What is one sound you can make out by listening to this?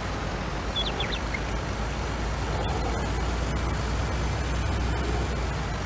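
A truck engine drones steadily as the truck drives along.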